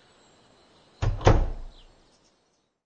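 A wooden door opens and shuts with a thud.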